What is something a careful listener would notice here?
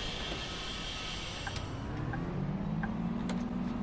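A bus engine revs up and rises in pitch.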